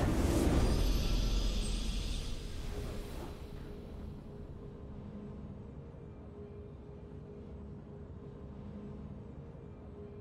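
Soft triumphant music plays quietly.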